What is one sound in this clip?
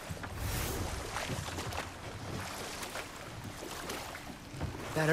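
Oars splash and paddle through water.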